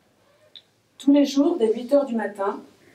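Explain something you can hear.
A woman reads aloud clearly into a nearby microphone.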